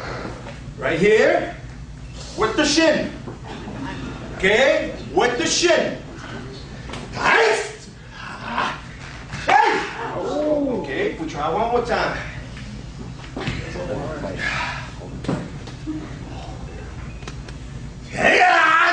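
A young man shouts loudly in short bursts.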